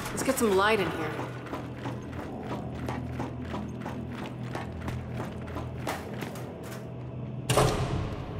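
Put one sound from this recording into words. Boots step steadily across a hard metal floor.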